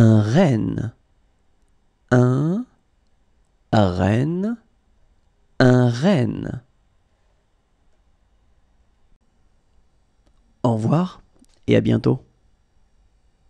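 A man pronounces words slowly and clearly, as if teaching.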